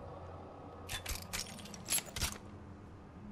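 A weapon clicks and rattles as it is handled.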